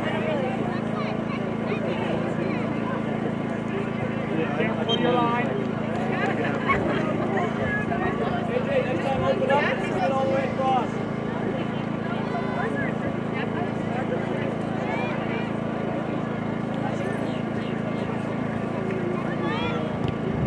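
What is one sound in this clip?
Distant players and spectators shout and call out across an open field.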